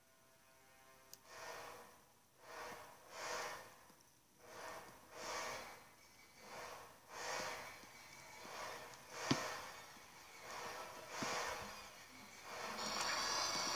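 Footsteps thud softly and evenly through small speakers.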